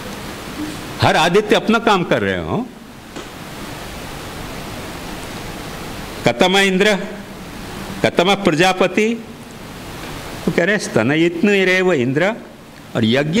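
An elderly man speaks into a microphone in short phrases, with pauses between them.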